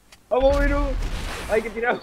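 Gunshots fire with a loud echo.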